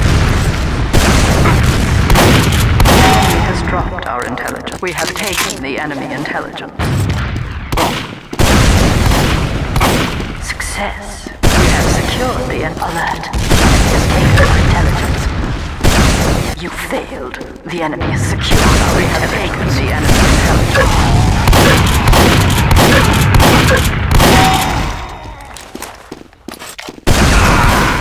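Rocket launchers fire and rockets explode with loud booms.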